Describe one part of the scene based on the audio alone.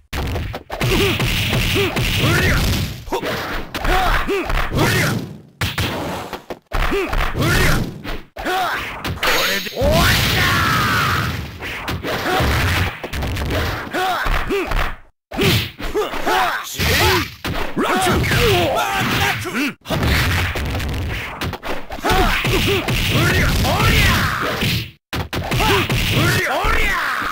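Fighting game punches and kicks land with sharp hits.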